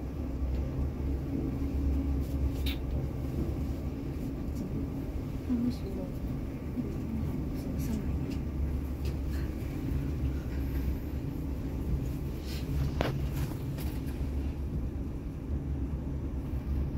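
A lift hums low and steady as it travels down.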